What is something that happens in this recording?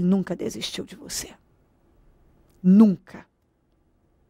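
A young woman speaks clearly and calmly into a microphone, close by.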